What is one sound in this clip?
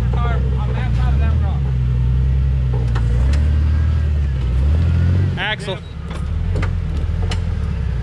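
Tyres crunch and scrape over rocks and mud.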